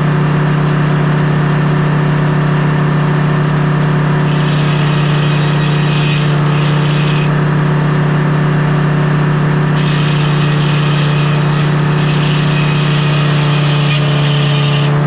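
An engine hums steadily nearby.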